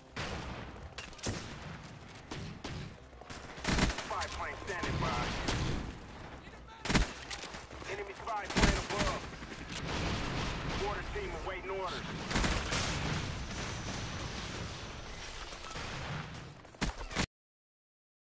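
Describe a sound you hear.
Rifles fire in short bursts, with loud sharp shots.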